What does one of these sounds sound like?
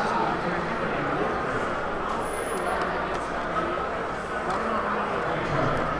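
Plastic wrapping crinkles as it is torn open.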